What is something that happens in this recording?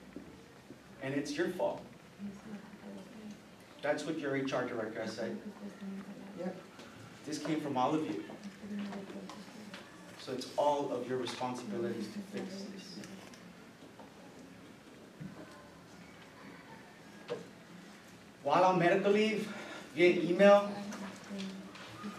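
A man speaks calmly in a small echoing room, pausing often between phrases.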